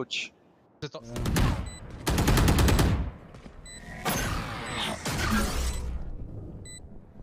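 Gunfire bursts loudly in rapid shots.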